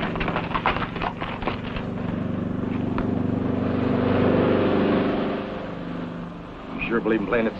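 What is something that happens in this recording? A plane's engine drones overhead and fades.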